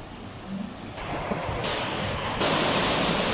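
A stream rushes over stones.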